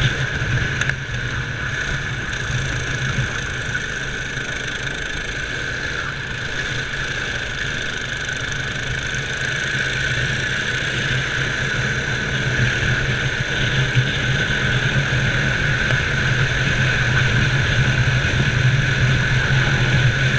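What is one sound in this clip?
A kart engine whines steadily up close.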